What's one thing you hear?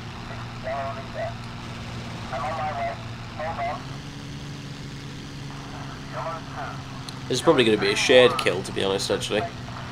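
A propeller aircraft engine drones steadily, rising slightly in pitch.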